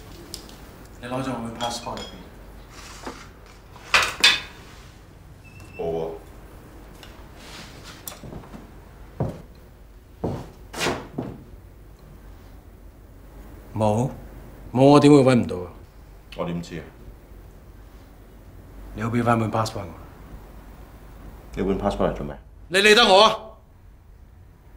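An older man asks sharp questions close by.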